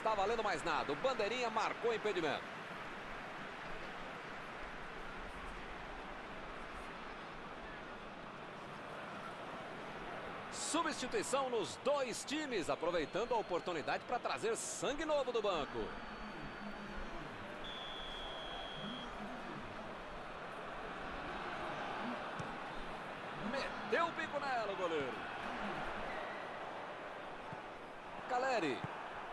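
A large crowd murmurs and cheers steadily in a stadium.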